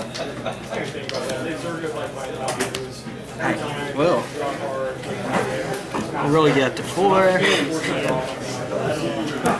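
Playing cards slap softly onto a table.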